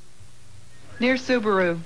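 A woman speaks to the listener close by.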